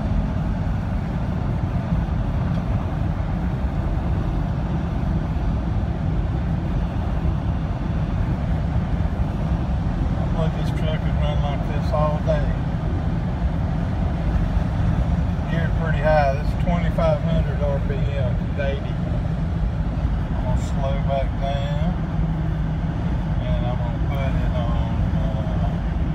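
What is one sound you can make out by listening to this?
A car engine drones steadily at high speed.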